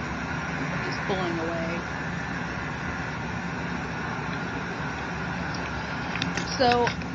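A woman speaks softly close by.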